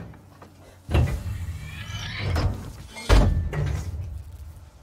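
A heavy metal brace slams free with a loud clang.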